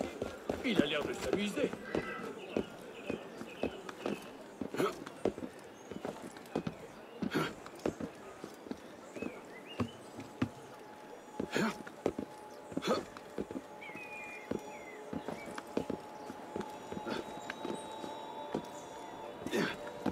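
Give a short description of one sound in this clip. Hands and feet scrape and grip on stone while climbing.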